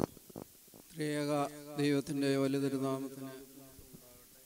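An elderly man chants a prayer through a microphone in an echoing hall.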